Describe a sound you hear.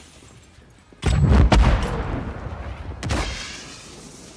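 Heavy explosions boom loudly and rumble.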